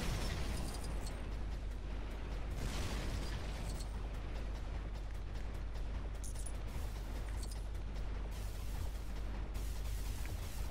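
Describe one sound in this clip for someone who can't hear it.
Laser blasts zap repeatedly.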